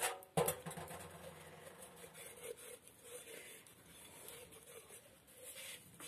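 A sponge scrubs a glass.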